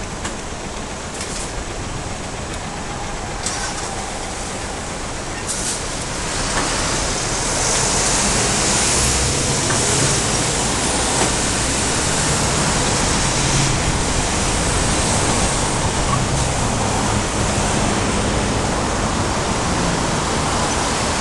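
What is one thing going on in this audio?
Traffic rumbles steadily on a nearby city road, growing louder after a few seconds.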